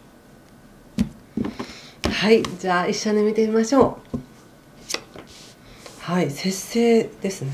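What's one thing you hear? A woman speaks brightly and close by.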